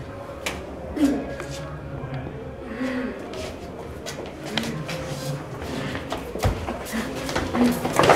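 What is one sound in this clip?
Feet shuffle and stamp on a sandy floor.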